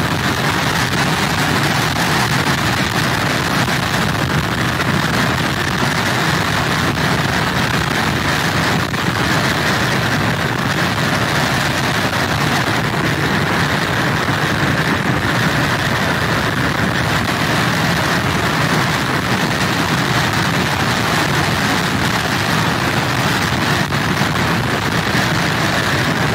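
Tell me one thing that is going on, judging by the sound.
Strong wind roars steadily outdoors.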